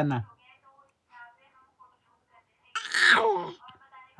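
A baby babbles and giggles.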